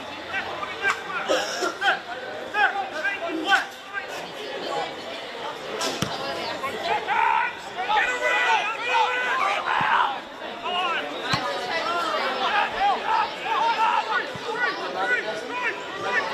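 Young men shout to each other across an open field, far off.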